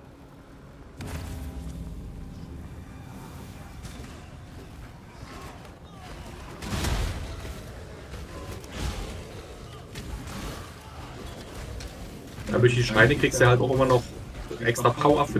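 Spell blasts and explosions crackle and boom in a game.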